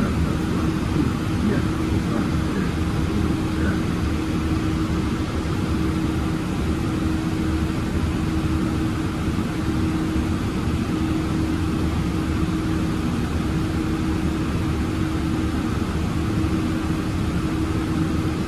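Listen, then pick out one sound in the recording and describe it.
A bus engine hums and rumbles steadily from inside the bus.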